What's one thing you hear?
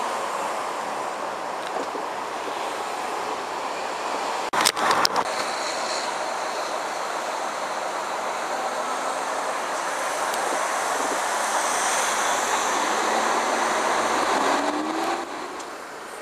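A car drives along a road with a steady rumble of tyres and engine.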